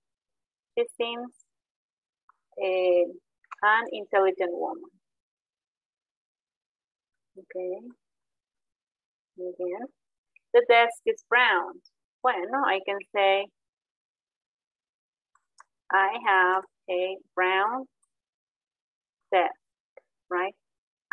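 A young woman speaks calmly and clearly, as if teaching, heard through an online call.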